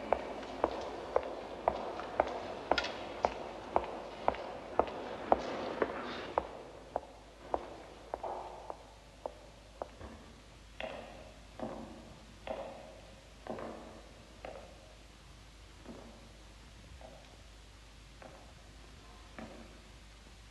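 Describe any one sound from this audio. High-heeled footsteps click on a stone floor, echoing in a large hall.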